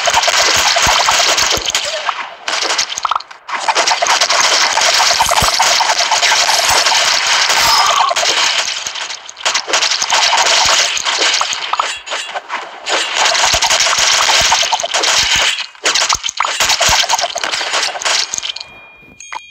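Video game gunfire and hit sounds crackle rapidly and without pause.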